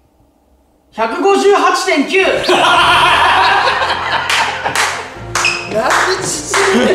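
Young men laugh loudly together.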